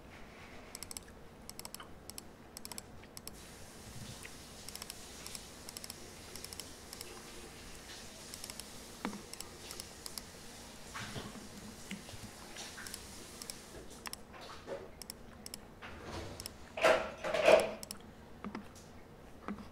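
Fingers tap softly on a laptop keyboard.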